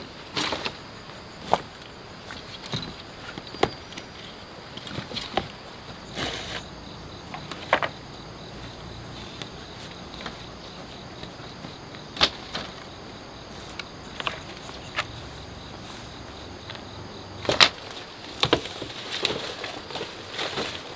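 Bamboo poles clatter and knock as they are dragged and set down.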